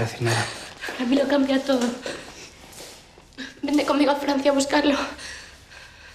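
A young woman speaks with emotion, her voice pleading.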